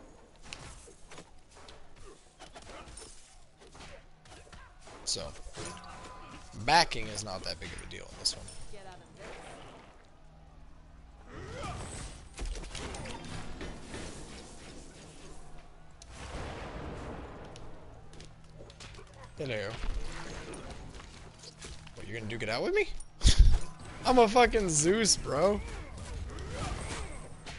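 Video game fighting sounds and magic blasts clash and boom.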